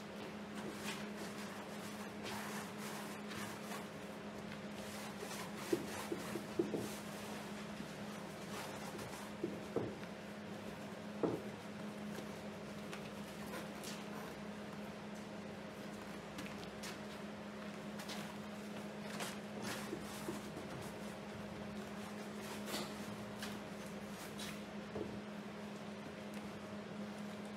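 A scraper scrapes and taps against a canvas.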